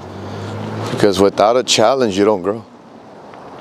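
A man speaks briefly and casually, close to a microphone.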